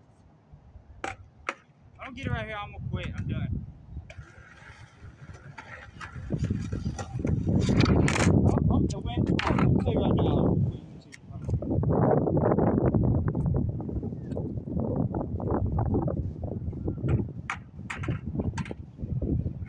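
A skateboard clacks sharply against the concrete.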